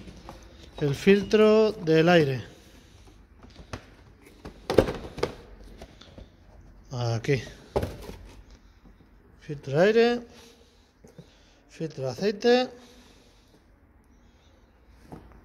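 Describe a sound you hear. Cardboard boxes rustle and tap as a hand handles them.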